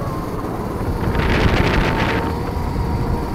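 Kart tyres rumble over a kerb.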